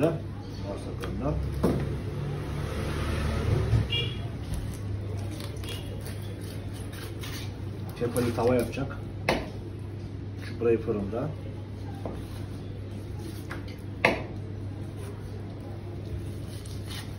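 A knife scrapes and taps on a cutting board.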